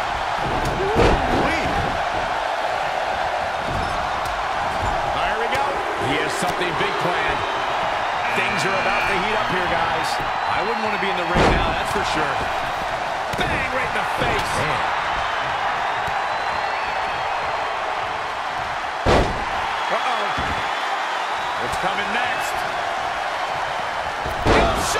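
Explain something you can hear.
Heavy thuds ring out as bodies slam onto a wrestling mat.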